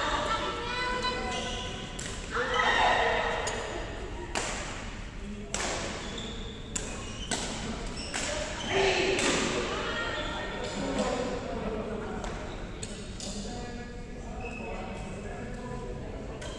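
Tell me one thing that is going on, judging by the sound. Shuttlecocks are struck with rackets in sharp, repeated pops.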